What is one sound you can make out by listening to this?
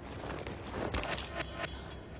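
A bag rustles as it is picked up.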